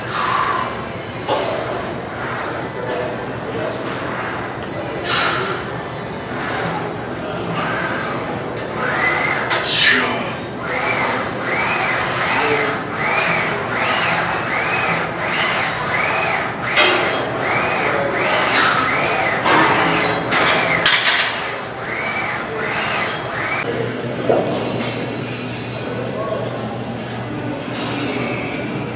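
Weight plates on a barbell clank and rattle.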